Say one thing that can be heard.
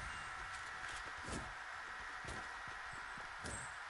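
Quick footsteps patter on grass in a video game.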